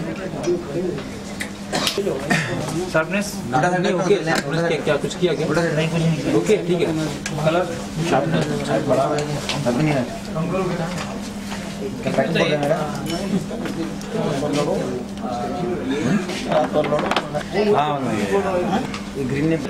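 Several men talk over one another nearby in a crowded, busy room.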